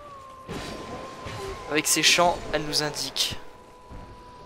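A sword slashes and strikes a creature.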